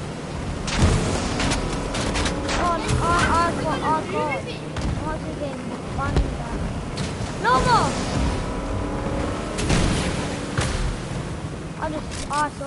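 A motorboat engine hums and roars steadily.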